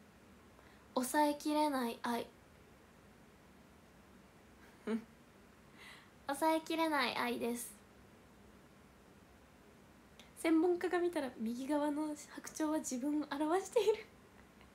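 A young woman talks cheerfully and close to a microphone, in short bursts.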